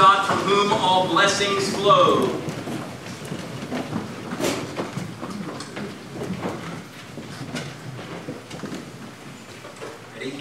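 People shuffle and rustle as they rise to their feet.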